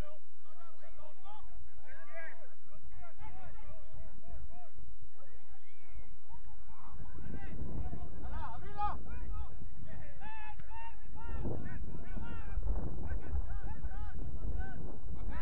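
Young players shout calls to each other across an open outdoor field.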